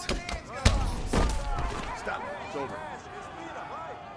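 A fighter falls hard to the ground.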